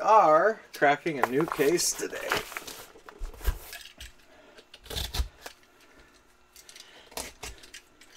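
A cardboard box scrapes and thumps as it is turned over and handled.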